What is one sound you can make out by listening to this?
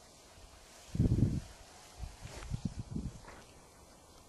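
Wind gusts roar across the microphone outdoors.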